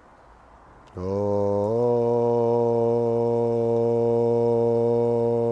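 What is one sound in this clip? A man chants a long, steady note close by.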